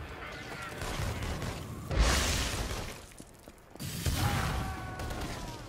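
Energy blasts crackle and boom in bursts.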